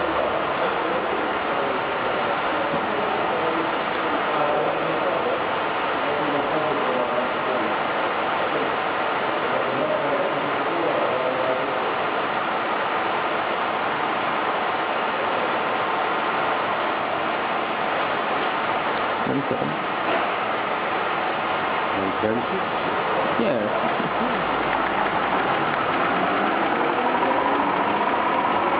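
A machine hums and whirs steadily.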